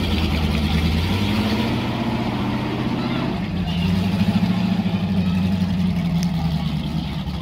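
Off-road vehicle engines idle and rumble steadily nearby.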